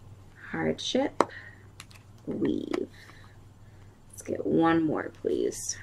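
Playing cards are laid down softly on a cloth surface.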